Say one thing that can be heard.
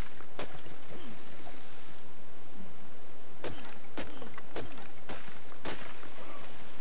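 A hatchet chops into a tree trunk with sharp, repeated thuds.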